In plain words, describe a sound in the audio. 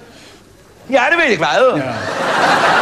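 A man sings loudly in a strong voice.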